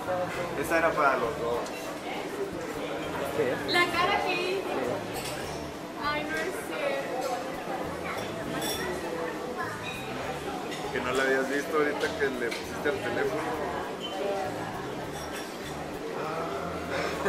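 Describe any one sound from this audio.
Women talk and laugh excitedly close by.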